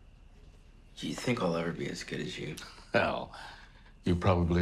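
A teenage boy speaks quietly, close by.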